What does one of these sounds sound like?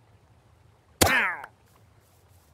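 A game trader cries out in a short, wavering groan as it dies.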